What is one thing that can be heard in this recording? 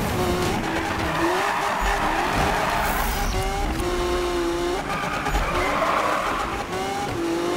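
Tyres screech loudly during a drift.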